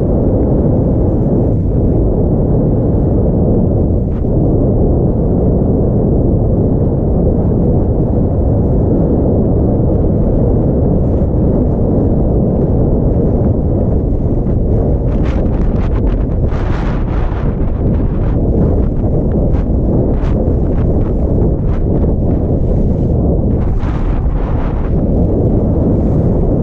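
Wind rushes loudly past, roaring throughout.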